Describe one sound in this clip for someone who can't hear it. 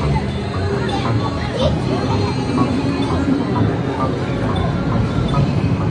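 An arcade game plays bright electronic sounds and music.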